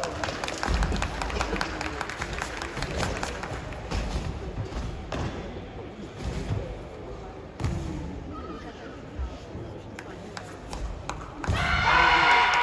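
Karate performers stamp their feet on a mat in an echoing hall.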